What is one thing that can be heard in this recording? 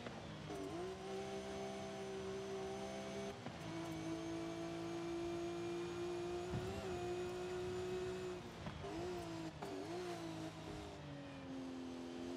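A racing car engine roars steadily, rising and dropping in pitch as gears shift.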